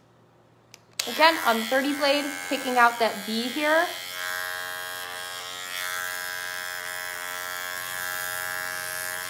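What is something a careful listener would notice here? Electric clippers buzz steadily up close.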